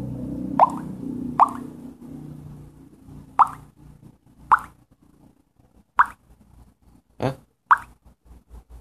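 Short electronic chimes ring out now and then.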